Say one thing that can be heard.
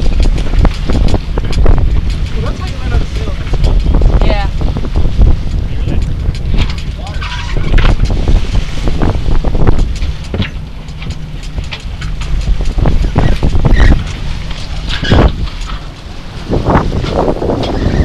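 Water splashes against a sailboat's hull.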